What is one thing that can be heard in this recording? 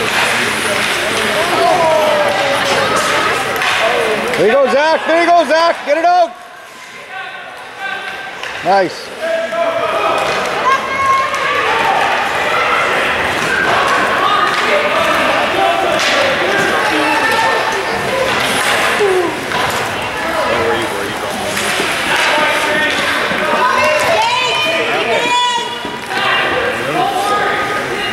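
Spectators chatter and call out close by in a large echoing rink.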